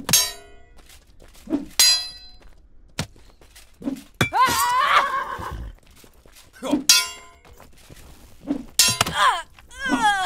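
Metal blades clash and ring sharply.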